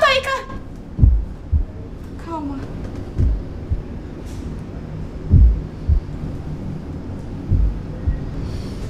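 A fist knocks heavily on a door.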